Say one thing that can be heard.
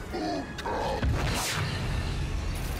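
A heavy magical blast booms and whooshes.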